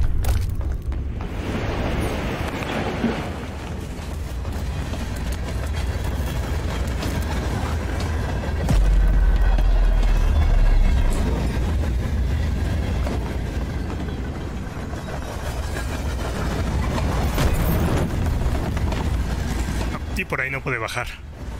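Footsteps patter across a hard floor.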